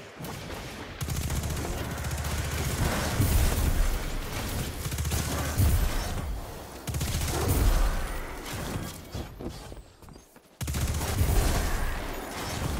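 Rapid gunfire blasts in quick bursts.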